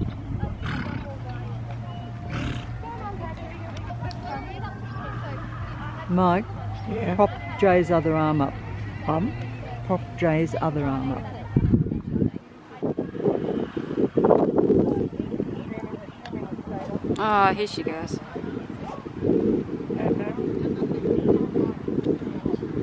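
A horse's hooves thud softly on grass as it trots.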